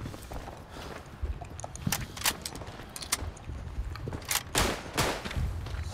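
A rifle bolt clicks as a clip of bullets is loaded.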